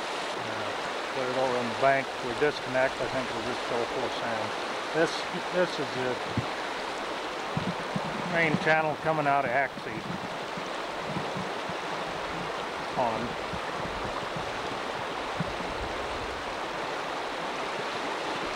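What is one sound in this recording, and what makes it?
Floodwater rushes and roars steadily outdoors.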